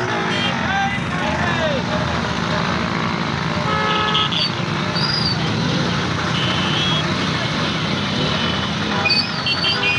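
A crowd of men shouts and cheers loudly.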